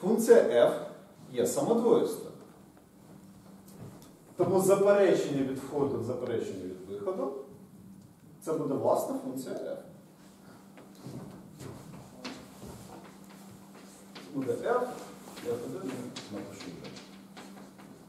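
A man lectures in an echoing room.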